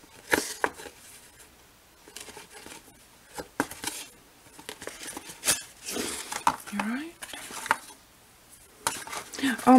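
A thread is pulled through paper with a soft rasp.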